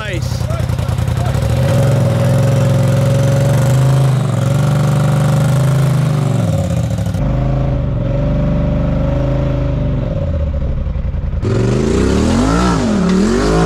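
An off-road vehicle's engine revs loudly, rising and falling as it climbs.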